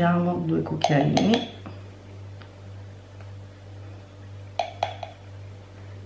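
Powder pours softly into a glass.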